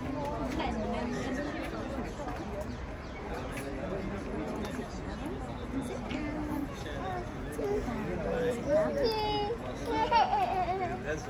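A crowd of people chatters all around, outdoors.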